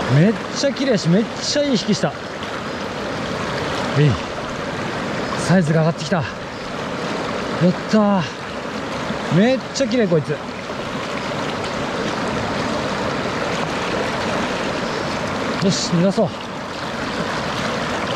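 A shallow stream rushes and splashes steadily over stones.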